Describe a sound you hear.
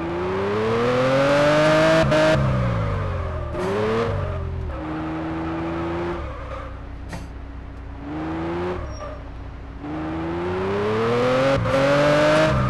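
A car engine revs up and down, rising in pitch and dropping with each gear change.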